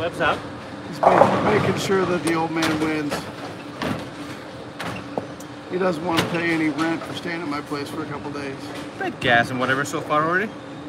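A man talks calmly close by in an echoing hall.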